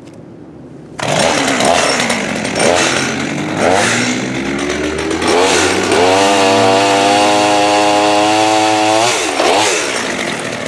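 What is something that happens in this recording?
A chainsaw revs and cuts through wood with a loud buzzing whine.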